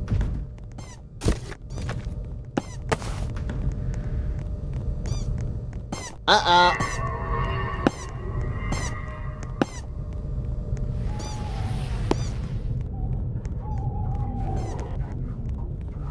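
Quick game footsteps patter on hard ground.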